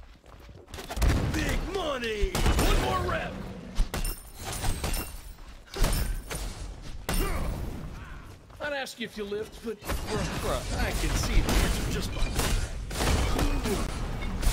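Weapons clash and strike again and again in a fight.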